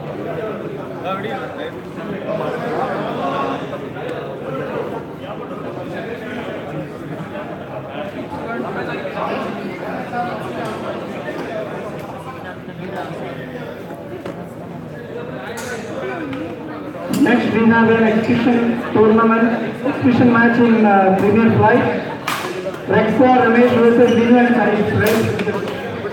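Many people chatter in the background of a large echoing hall.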